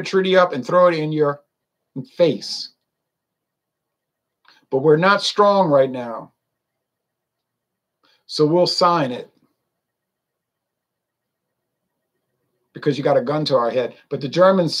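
An older man speaks calmly into a nearby microphone, in short bursts with pauses.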